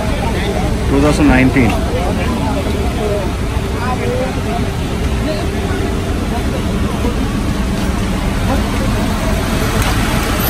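A crowd of men chatters and talks nearby outdoors.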